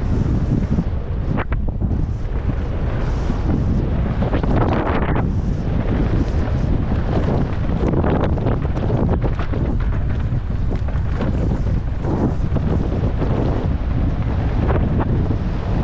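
Bike tyres rumble and crunch over a rough dirt trail.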